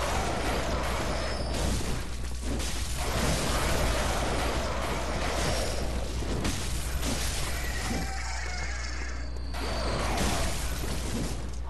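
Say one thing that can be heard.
A blade slashes and thuds into flesh in quick strikes.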